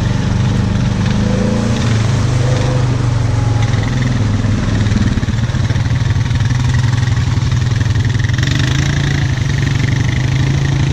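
A quad bike engine rumbles steadily up close.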